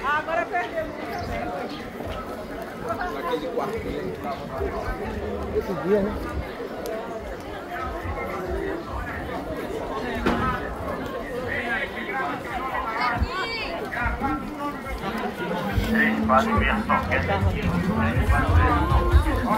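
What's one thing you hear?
A crowd of men and women chatter throughout, outdoors.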